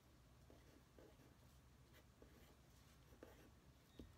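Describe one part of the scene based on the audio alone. A felt-tip pen scratches softly across card.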